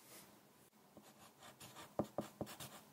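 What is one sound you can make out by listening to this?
A pencil scratches and taps on paper close by.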